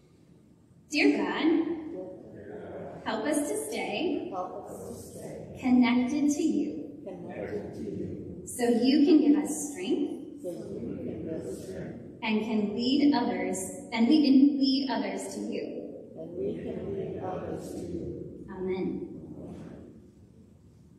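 A young woman reads aloud in a large echoing hall.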